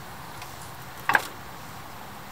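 A bicycle wheel knocks against a wooden ramp.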